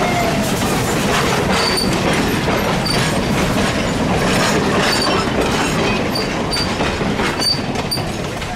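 Railway cars roll past on steel rails, wheels clattering over the rail joints.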